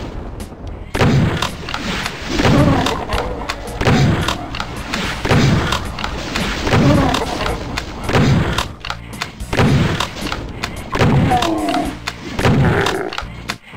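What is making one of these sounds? A shotgun fires heavy blasts again and again.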